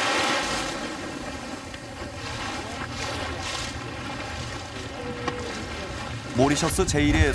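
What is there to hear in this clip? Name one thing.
Small waves lap and splash gently on open water.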